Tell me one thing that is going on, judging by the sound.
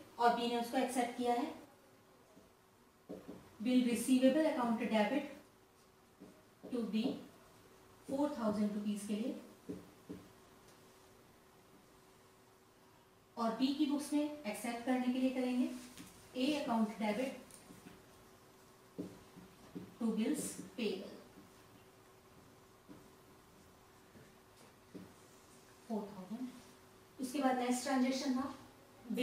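A woman speaks calmly and clearly, as if teaching, close to a microphone.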